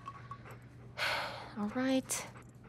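A young woman sighs close by.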